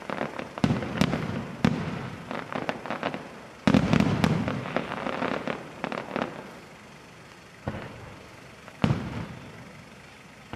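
Aerial firework shells burst with deep booms that echo.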